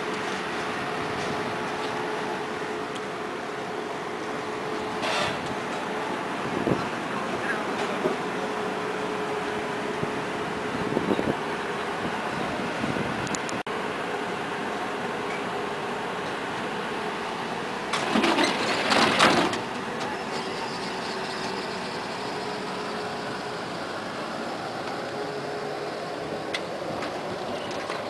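A tram's motor hums steadily outdoors.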